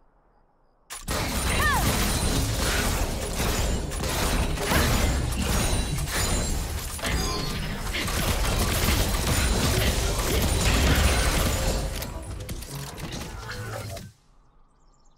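Game spell effects and clashes of battle ring out in quick bursts.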